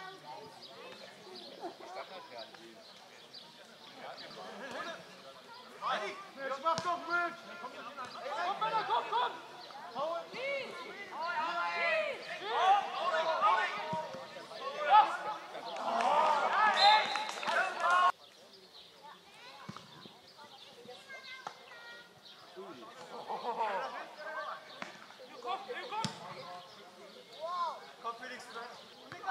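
Men shout and call out across an open field.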